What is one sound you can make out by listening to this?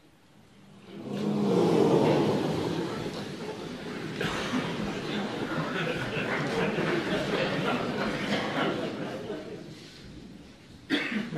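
An audience in a large hall bursts into laughter.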